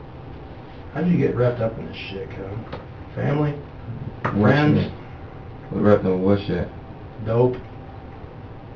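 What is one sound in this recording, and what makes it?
A man speaks calmly in short bursts nearby.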